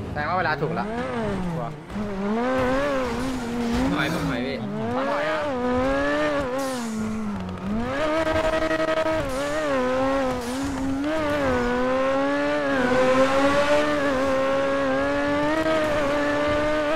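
A sports car engine roars and revs up and down as it accelerates through the gears.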